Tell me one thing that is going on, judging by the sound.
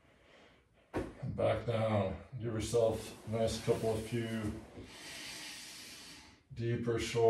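A man speaks calmly and with animation close by.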